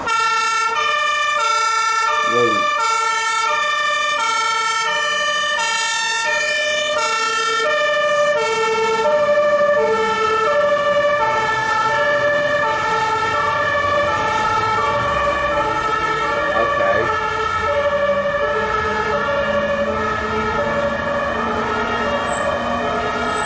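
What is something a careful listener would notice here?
A German fire truck's two-tone siren alternates between high and low notes.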